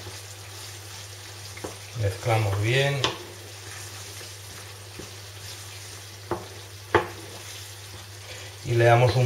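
A wooden spoon stirs and scrapes food in a pan.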